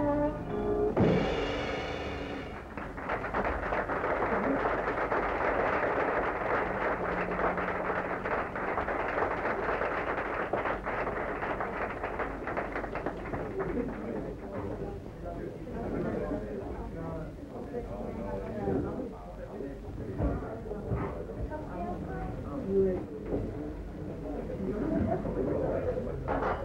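A small jazz band plays lively music.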